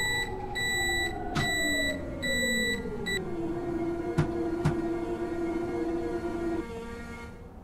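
An electric train motor whines, falling in pitch as the train slows to a stop.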